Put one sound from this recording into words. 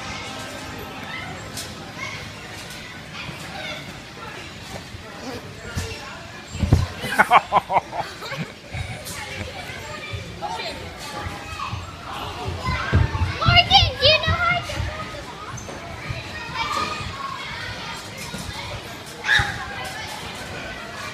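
Trampolines creak and thump as children bounce on them.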